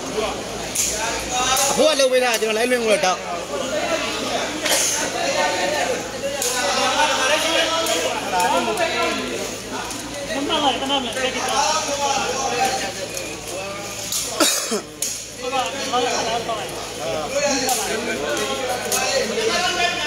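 A large crowd of men, women and children chatters and calls out.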